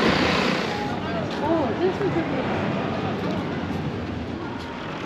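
A crowd of adults chatters outdoors along a busy street.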